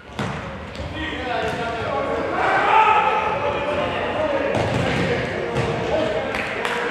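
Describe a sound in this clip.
Players shout to each other across the court.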